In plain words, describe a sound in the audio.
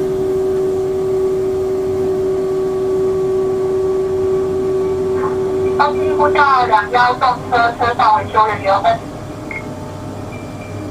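A train rolls along the tracks with a steady hum.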